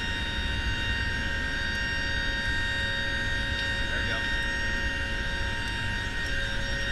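Aircraft engines drone loudly and steadily with a high whine.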